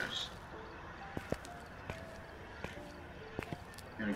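Footsteps tap softly on a hard path.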